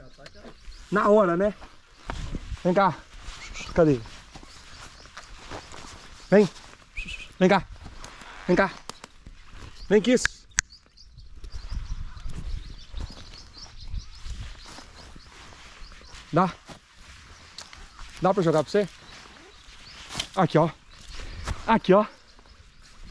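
A man speaks and calls out close by.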